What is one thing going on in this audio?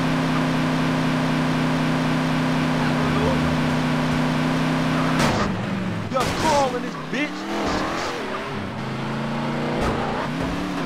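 A car engine drones steadily, then revs up and down.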